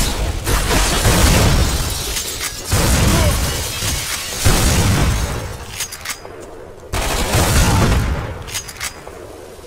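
An assault rifle fires loud bursts of shots.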